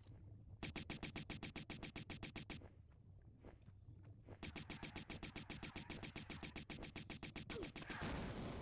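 Pistols fire in rapid bursts.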